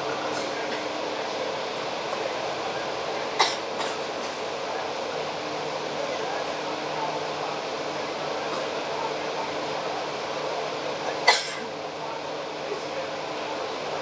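City traffic rumbles steadily along a busy road.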